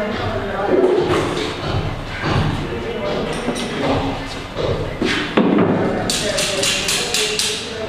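Wooden boards knock and clatter as they are set down.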